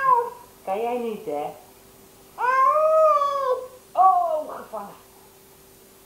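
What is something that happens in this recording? A woman talks to a baby in a high sing-song voice close by.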